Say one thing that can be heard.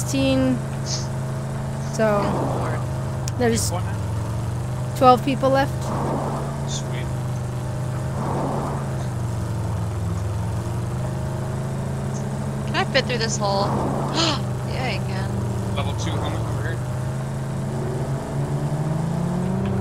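A vehicle engine hums steadily as it drives over rough ground.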